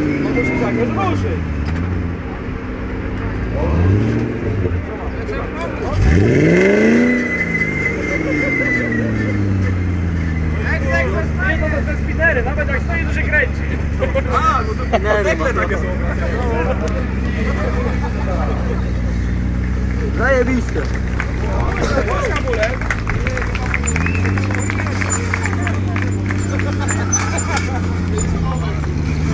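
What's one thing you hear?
A car engine idles and revs loudly close by.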